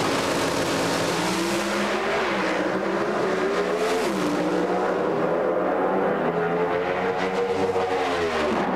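Racing car engines roar loudly as the cars speed away.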